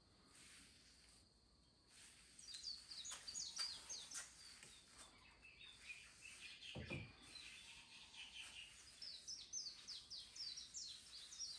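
A cloth rubs and squeaks across a smooth, glossy tabletop.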